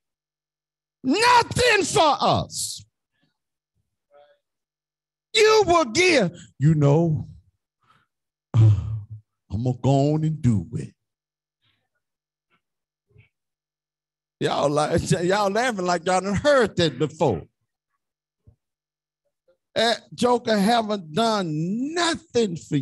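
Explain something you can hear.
A man preaches with animation through a microphone and loudspeakers, in bursts with pauses between.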